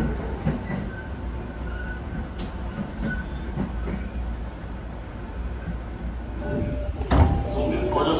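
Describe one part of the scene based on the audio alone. A train rumbles low and steady.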